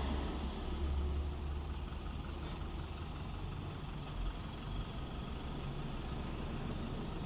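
Cars drive past on a road outdoors.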